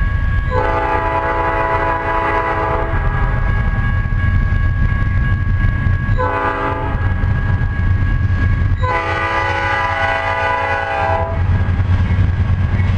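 A diesel locomotive rumbles loudly as it approaches.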